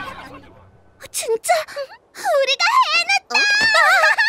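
A young girl speaks with excitement.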